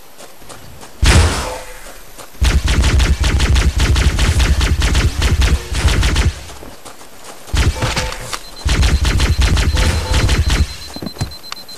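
A plasma gun fires in rapid bursts.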